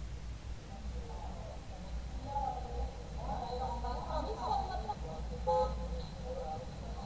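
Several women talk quietly nearby.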